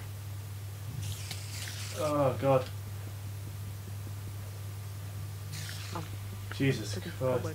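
A spider hisses and chitters in short bursts.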